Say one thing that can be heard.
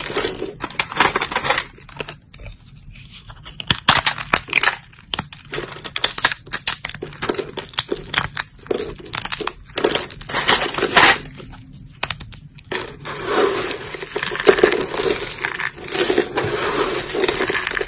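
Fingers rustle and clatter through a pile of dry soap flakes.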